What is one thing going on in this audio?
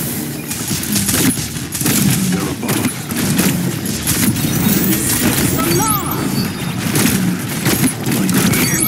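Pistols fire in rapid bursts.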